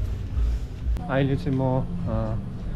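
A young man speaks close by, casually.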